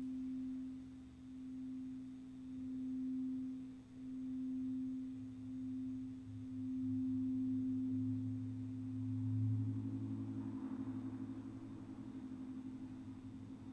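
Singing bowls ring with a steady hum that swells and fades in waves.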